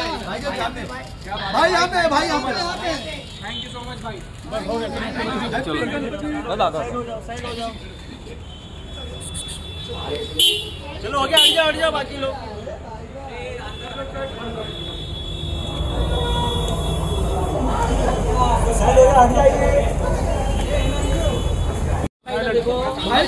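Men in a crowd shout and call out with excitement close by.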